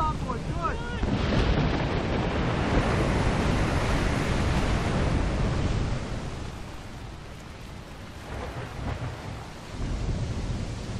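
Waves rush and churn against a ship's hull.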